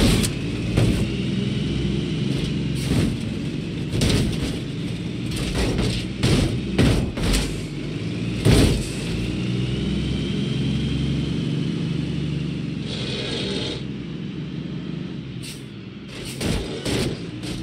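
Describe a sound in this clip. A bus bumps and thuds over a concrete barrier.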